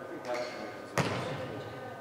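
A volleyball is struck with a sharp slap that echoes around a large hall.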